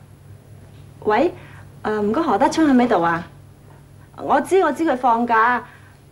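A young woman talks urgently into a telephone, close by.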